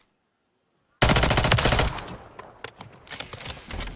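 A rifle fires in rapid loud bursts.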